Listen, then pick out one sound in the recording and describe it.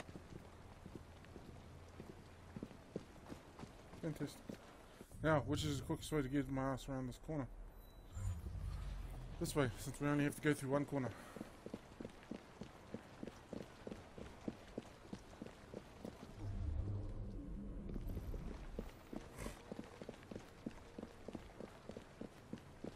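Footsteps walk steadily on stone paving.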